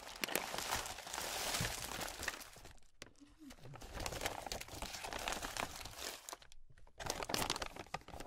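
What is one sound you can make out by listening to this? Wrapped candies clatter and rustle as they spill out.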